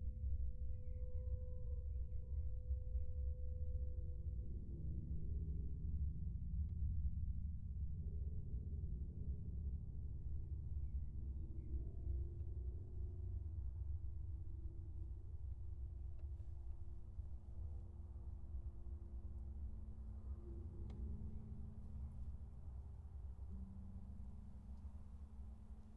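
Wind buffets the microphone outdoors with a low, steady rumble.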